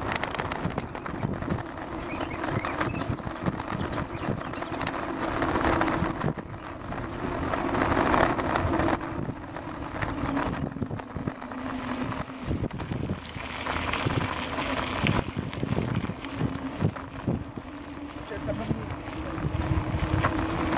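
Wind buffets past steadily outdoors.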